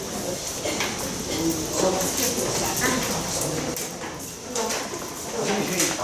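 A woman speaks into a microphone over loudspeakers in an echoing room.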